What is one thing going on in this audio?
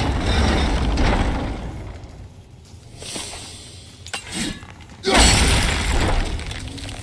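A heavy wooden wheel creaks and grinds as it turns.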